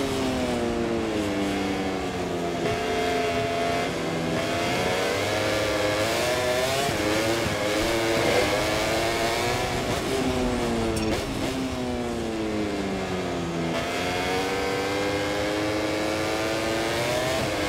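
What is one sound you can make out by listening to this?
A motorcycle engine screams at high revs, rising and falling as it shifts gears.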